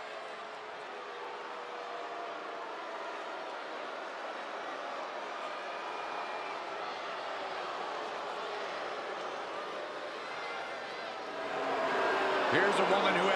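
A large crowd cheers and roars, swelling louder near the end.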